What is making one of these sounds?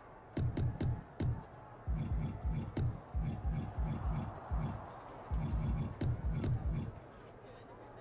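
Short game menu clicks tick in quick succession.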